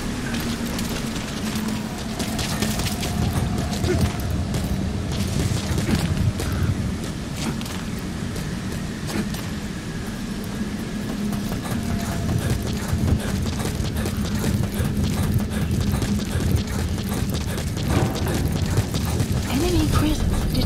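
Footsteps thud quickly over rough ground.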